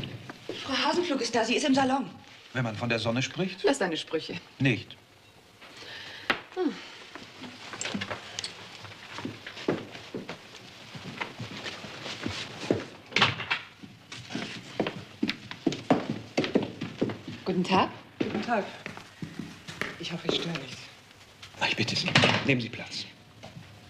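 A middle-aged man speaks with feeling, close by.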